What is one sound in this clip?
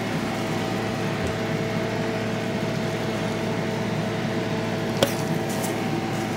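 A squeeze bottle sputters as sauce is squirted out.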